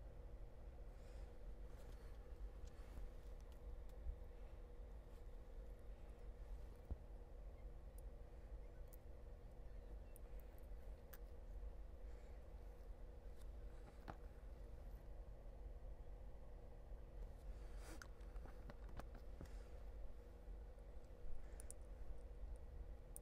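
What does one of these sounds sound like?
Small plastic parts click and tap softly as gloved hands handle them.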